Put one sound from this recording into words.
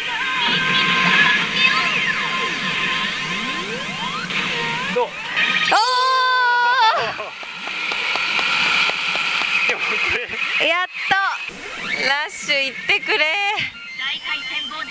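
A pachinko machine plays loud electronic music and effects.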